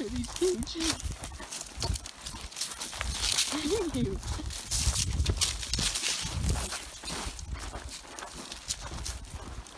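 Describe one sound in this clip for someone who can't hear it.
Footsteps crunch through dry brush.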